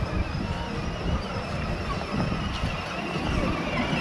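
A child's electric toy car whirs along the pavement.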